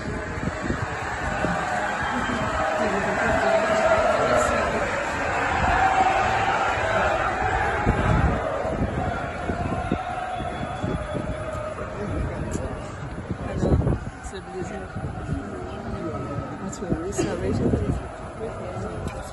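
A large crowd murmurs and cheers in a big echoing space.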